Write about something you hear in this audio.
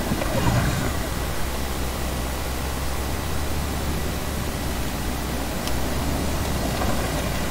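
A glider whooshes steadily through rushing wind.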